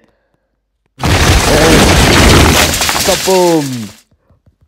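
A wall smashes apart with a loud, rumbling crash.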